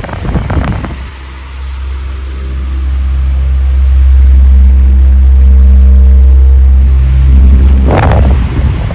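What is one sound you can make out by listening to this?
An electric fan motor hums steadily.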